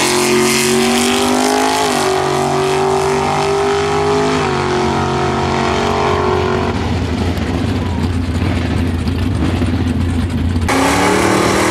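A hot rod engine roars loudly as it accelerates away.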